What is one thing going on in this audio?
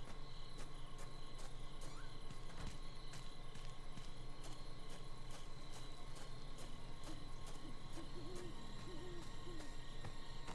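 Footsteps run quickly over dry ground and leaves.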